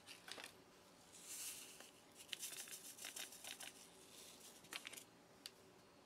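Granules pour into a glass.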